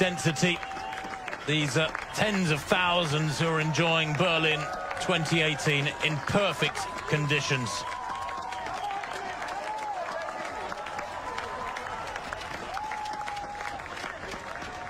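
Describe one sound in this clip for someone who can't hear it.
A crowd cheers and claps loudly outdoors.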